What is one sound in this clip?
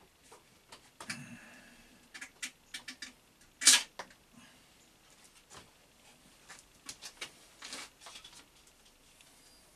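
Metal parts clink and knock as a man handles tools.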